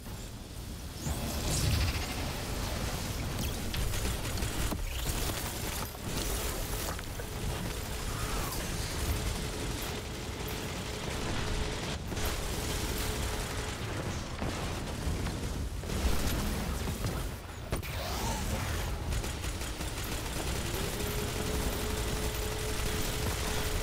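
Rapid gunfire crackles with blasts and explosions.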